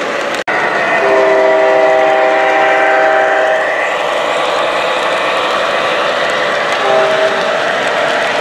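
A model diesel locomotive's electronic horn sounds.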